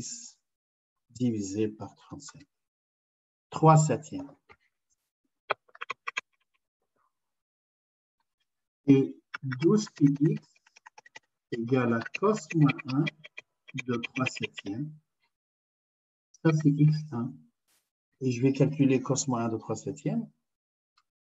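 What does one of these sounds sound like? A man explains calmly over an online call, in short bursts with pauses.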